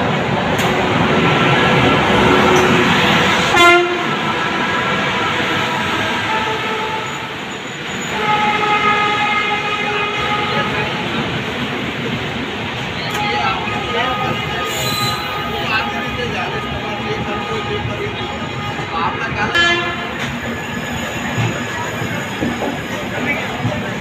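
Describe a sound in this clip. A train rolls past close by, its wheels rumbling and clattering on the rails.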